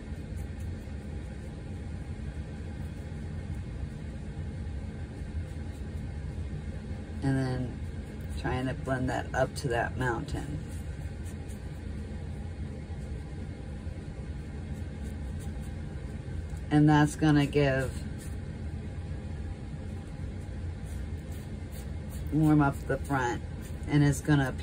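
A paintbrush softly brushes across paper.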